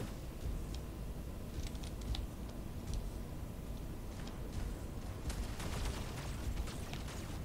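Game guns fire in quick bursts.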